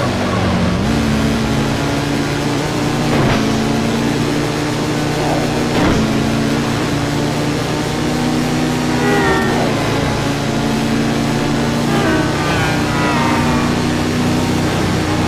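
A motorcycle engine roars steadily at high speed.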